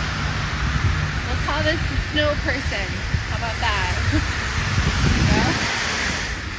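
A woman speaks casually nearby outdoors.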